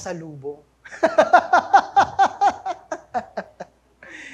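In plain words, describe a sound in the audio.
A man laughs heartily through a microphone.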